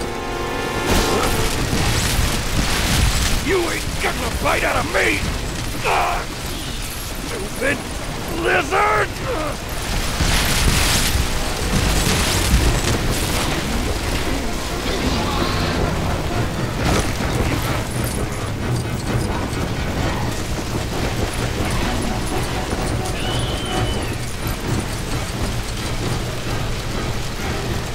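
Flames crackle and roar steadily.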